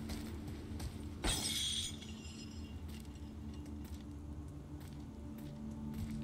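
A heavy chain rattles and clanks.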